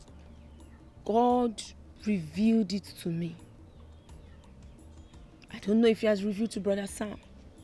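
A woman speaks with animation, close by.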